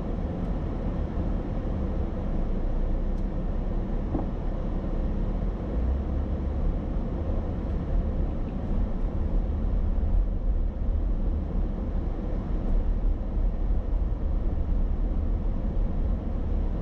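Tyres roll on asphalt.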